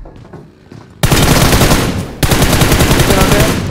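Rapid gunfire rattles loudly and close.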